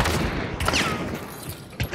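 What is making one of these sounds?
A bullet strikes a wooden wall with a sharp crack.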